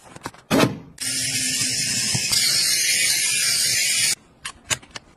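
An electric brush whirs and scrubs a stovetop.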